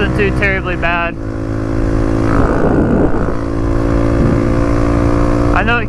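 A dirt bike engine hums steadily and revs up and down.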